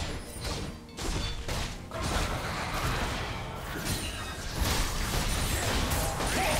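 Video game spell blasts and hits crackle and boom in a fast fight.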